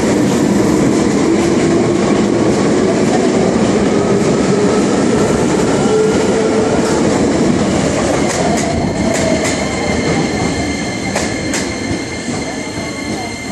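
A train rumbles loudly past along the tracks.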